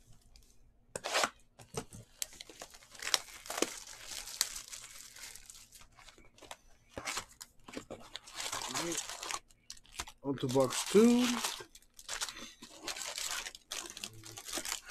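Cardboard packaging rustles and crinkles as hands handle a box.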